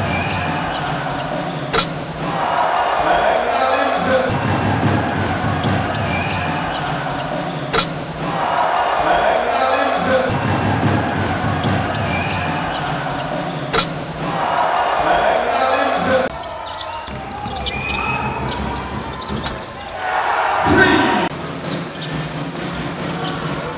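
Sneakers squeak on a hardwood court.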